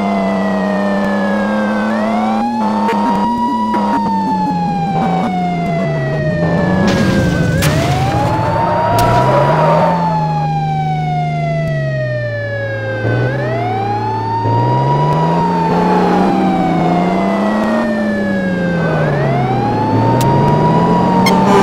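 A police siren wails steadily, rising and falling in a slow cycle.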